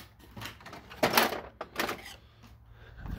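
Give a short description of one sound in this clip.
Metal tools clink and rattle in a drawer.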